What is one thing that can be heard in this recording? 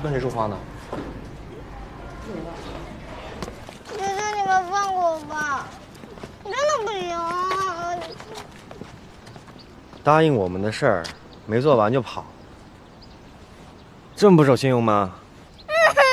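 A teenage boy speaks calmly close by.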